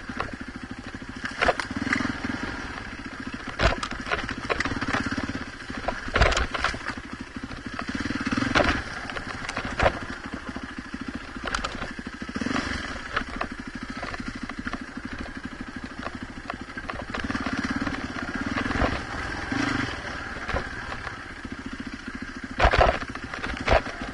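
Tyres crunch and bump over a rough dirt trail.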